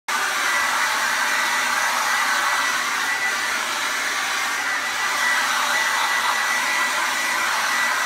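A hair dryer blows with a steady, close whir and a high whine.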